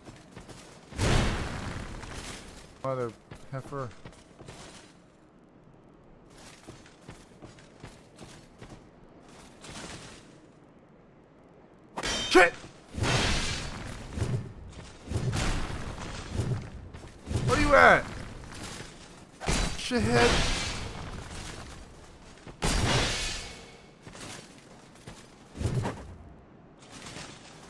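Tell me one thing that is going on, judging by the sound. A heavy sword swings and strikes with loud whooshes and thuds.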